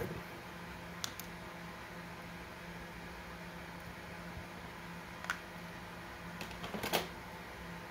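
Small plastic parts click softly as they are handled.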